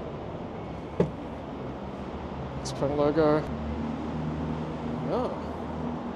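A power tailgate hums as it opens.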